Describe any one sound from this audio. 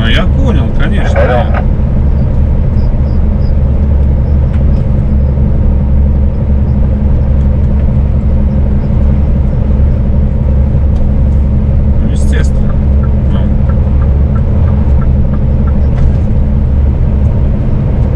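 A vehicle's engine drones steadily.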